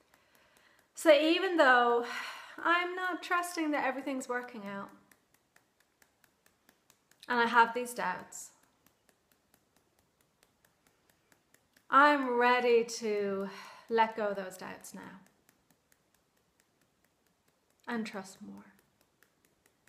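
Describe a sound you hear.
A woman speaks calmly and closely, in short phrases with pauses.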